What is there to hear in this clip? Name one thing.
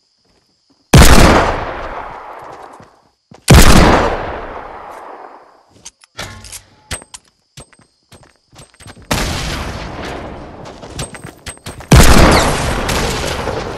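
A heavy pistol fires single booming shots that echo away.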